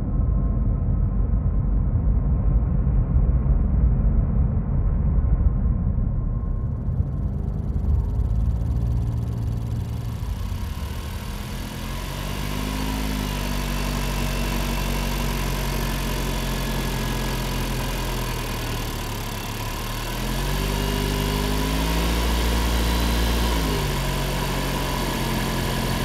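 A car engine hums steadily and revs up twice.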